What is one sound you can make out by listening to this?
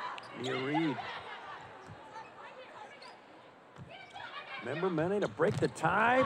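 A volleyball is struck with a smack.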